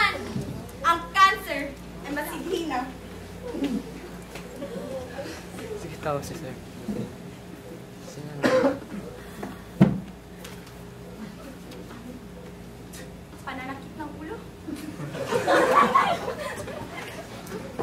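An audience of teenagers murmurs and laughs.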